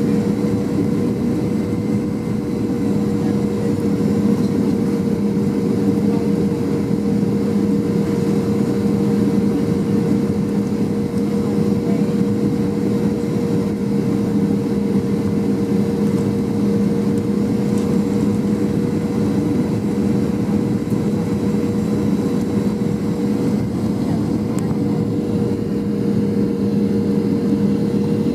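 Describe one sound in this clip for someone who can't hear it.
A jet engine drones steadily, heard from inside an airliner cabin.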